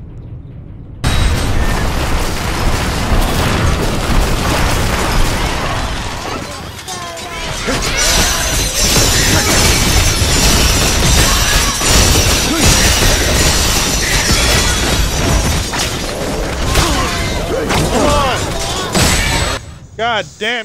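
Swords clash and blows crash loudly in a busy fight.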